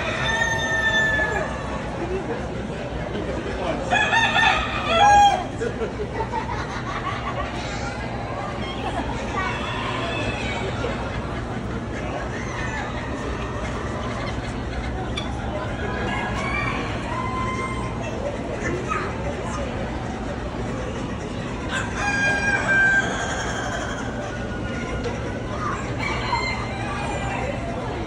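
Chickens cluck and squawk all around.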